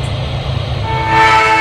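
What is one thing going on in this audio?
A train horn blows loudly.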